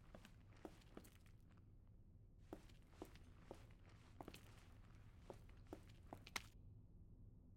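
Footsteps fall on a hard floor.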